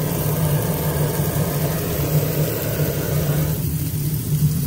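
A blowtorch roars with a steady hiss.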